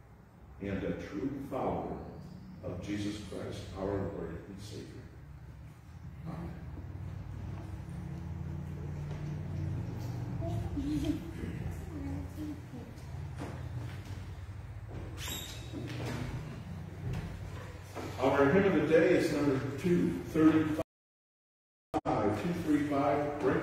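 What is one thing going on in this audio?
An elderly man speaks calmly at a distance in a large echoing hall.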